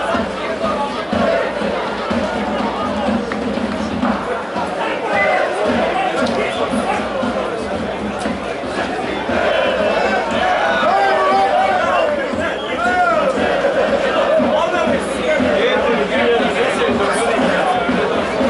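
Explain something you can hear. A stadium crowd murmurs and chants.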